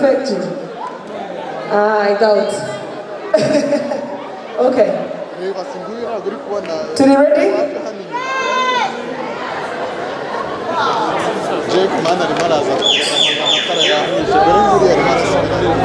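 A live band plays loudly through speakers in a large echoing tent.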